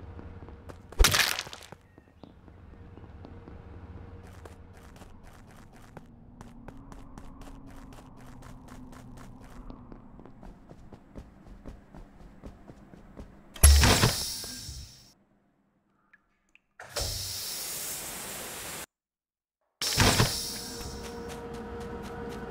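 Game sound effects burst out loudly.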